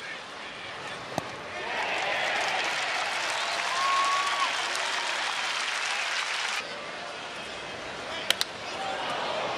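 A stadium crowd murmurs and cheers.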